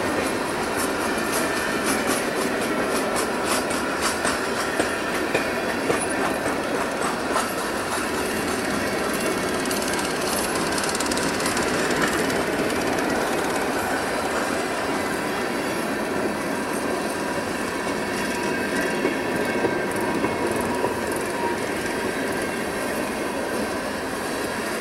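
Steel wheels clack rhythmically over rail joints.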